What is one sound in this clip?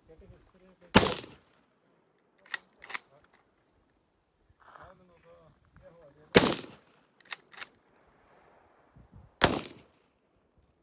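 A rifle fires loud single shots outdoors, each with a short echo.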